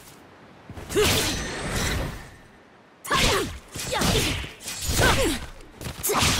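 Blades swish and clash with sharp metallic hits.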